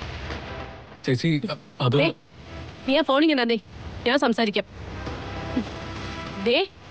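A middle-aged woman speaks loudly and angrily, close by.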